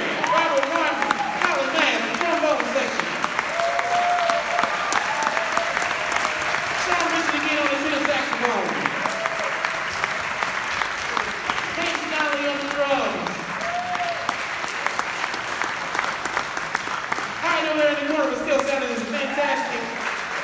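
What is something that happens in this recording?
A big jazz band of saxophones and brass plays loudly in an echoing hall.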